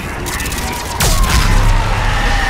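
A loud explosion booms with a deep rumble.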